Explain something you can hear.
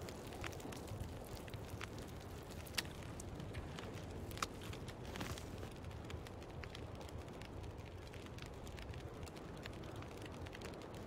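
A wood fire crackles and pops inside a stove.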